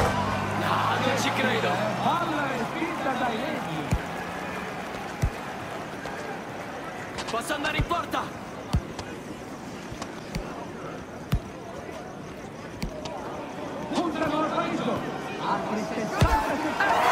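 A crowd murmurs and cheers in a large stadium.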